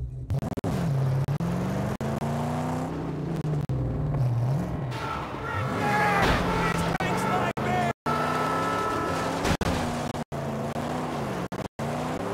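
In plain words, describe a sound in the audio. Tyres crunch and skid on loose sand.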